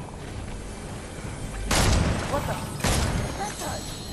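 A treasure chest opens with a chiming shimmer.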